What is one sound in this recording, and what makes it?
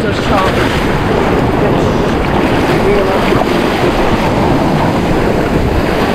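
A fish thrashes and splashes in shallow water.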